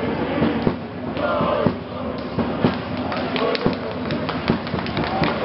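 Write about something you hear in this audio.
A crowd of spectators murmurs and calls out in a large echoing hall.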